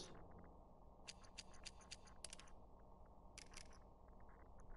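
A game's menu clicks and ticks in quick succession.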